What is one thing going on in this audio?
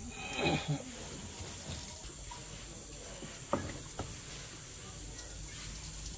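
A wire grill rattles and clinks as pieces of meat are turned.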